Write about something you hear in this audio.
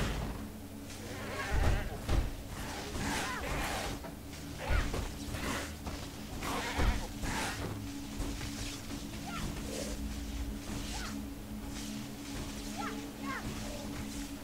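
Creatures snarl and screech as they are struck down.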